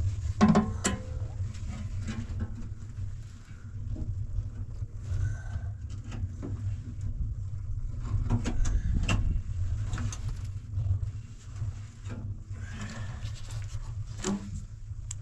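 A metal pipe clinks and scrapes as it is handled.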